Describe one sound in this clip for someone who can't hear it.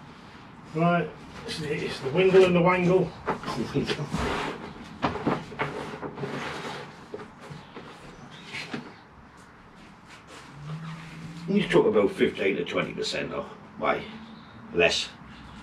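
Soil and roots rustle and crumble as a man handles a plant.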